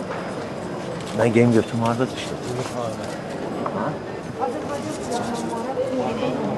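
A crowd of people chatters around.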